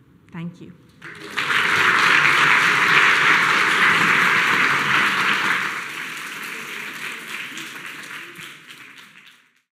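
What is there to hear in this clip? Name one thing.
An audience applauds loudly and then fades out.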